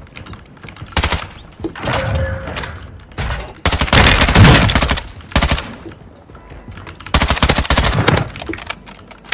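Gunfire rattles in rapid bursts at close range.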